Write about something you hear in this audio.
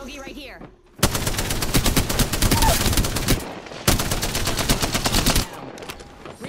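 A rifle fires rapid bursts of shots at close range.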